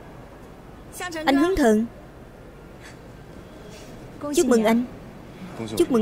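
A young woman speaks brightly and close by.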